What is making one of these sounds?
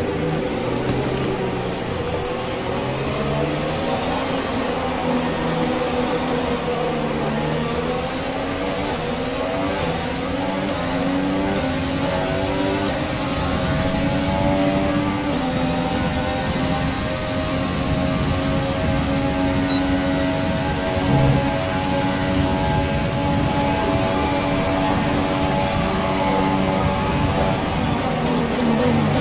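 A racing car engine screams at high revs, rising in pitch through the gears.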